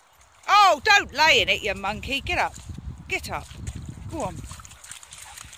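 A dog splashes through shallow puddles.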